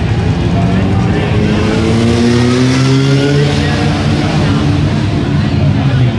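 A motorcycle revs up and roars past close by.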